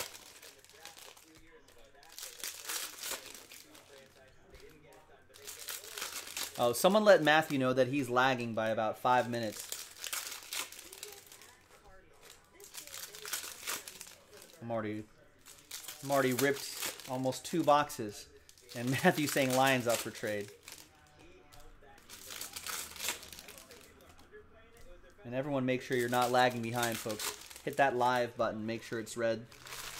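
Foil wrappers crinkle and rustle as they are torn open.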